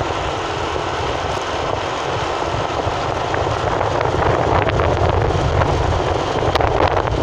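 Wind buffets a moving car.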